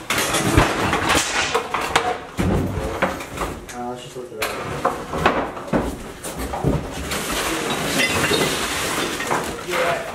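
Objects clatter and rustle as a man moves things about.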